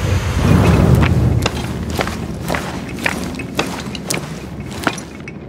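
Hands grip and scrape against rock while climbing.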